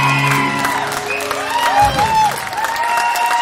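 A band plays live music with electric guitar and keyboard.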